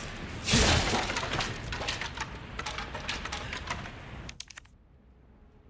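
Wood pieces clatter to the ground.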